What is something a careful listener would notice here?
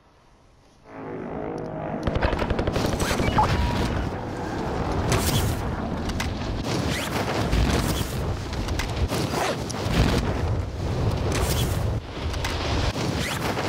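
Wind rushes loudly, as in a fast fall through the air.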